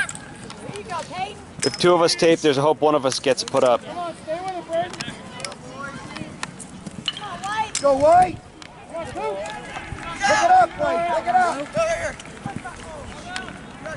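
Lacrosse sticks clack against each other.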